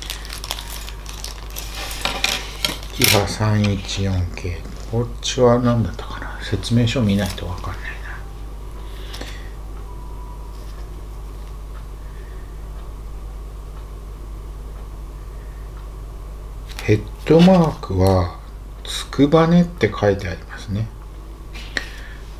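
Plastic packaging crinkles and clicks in a man's hands.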